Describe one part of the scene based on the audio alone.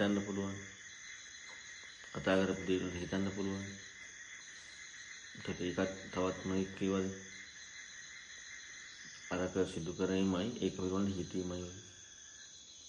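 A man speaks calmly through a microphone, with pauses between phrases.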